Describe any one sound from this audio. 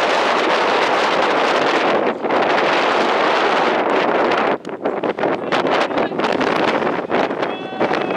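Wind rushes loudly across an open field.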